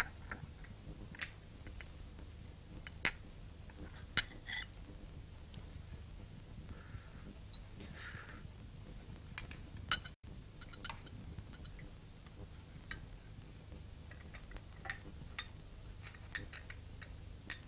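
A spoon clinks against a small dish.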